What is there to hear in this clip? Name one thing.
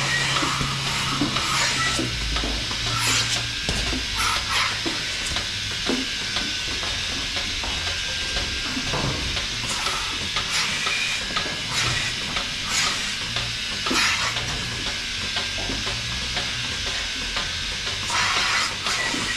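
Milking machines hum and pulse steadily.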